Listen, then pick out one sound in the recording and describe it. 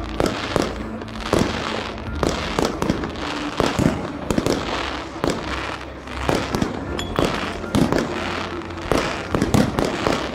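Fireworks bang and crackle repeatedly outdoors.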